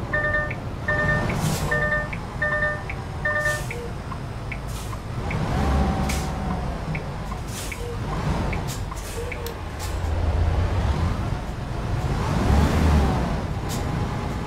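A line of trucks rumbles past close by with a rushing whoosh.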